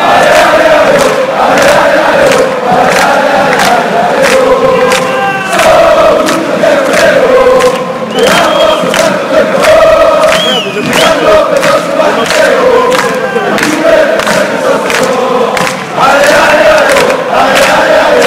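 A large crowd of fans sings a chant loudly in a big echoing arena.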